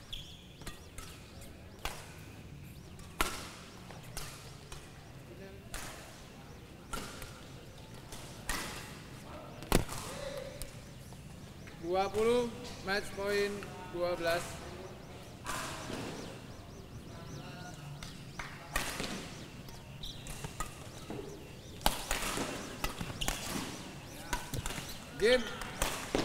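Rackets strike a shuttlecock with sharp pops, in a large echoing hall.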